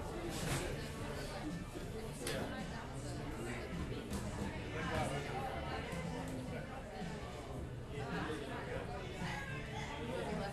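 Several men and women chatter in a low murmur around the room.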